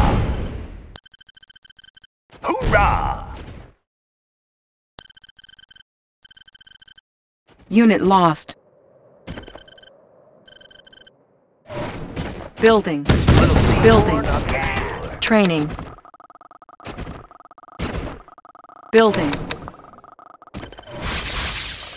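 Short electronic beeps sound from a game's menu as items are picked.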